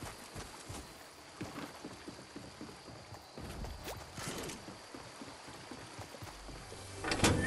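Running footsteps thud on wooden planks.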